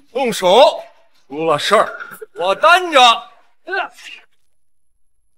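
A young man speaks loudly and angrily, close by.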